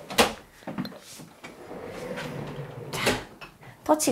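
A wardrobe door slides along its track.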